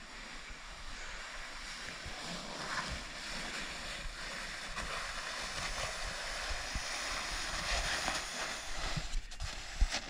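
Snow hisses and scrapes under a man sliding down a slope.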